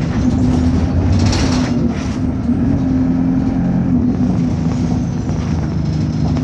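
A bus engine rumbles and hums steadily while driving.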